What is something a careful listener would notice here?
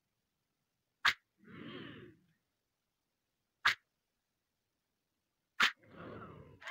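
An open-handed slap smacks hard against a face.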